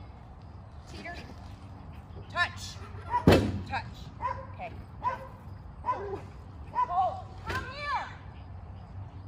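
A woman calls out commands to a dog with animation.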